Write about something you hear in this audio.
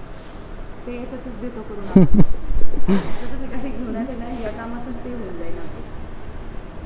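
A young woman speaks casually nearby.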